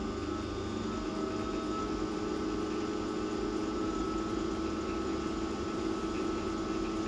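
A pump motor hums steadily, its pitch rising slightly as it speeds up.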